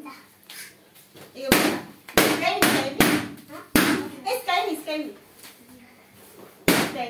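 Children talk and laugh excitedly nearby.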